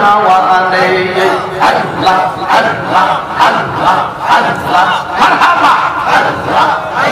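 A man preaches loudly and with fervour through a microphone and loudspeakers, echoing outdoors.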